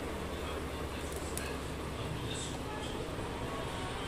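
Water bubbles and simmers in a pot.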